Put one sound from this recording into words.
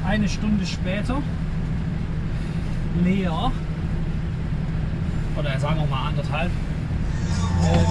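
A safety vest rustles as it is handled.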